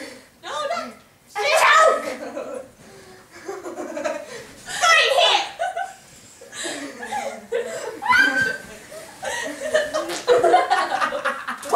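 Young girls laugh and shriek loudly close by.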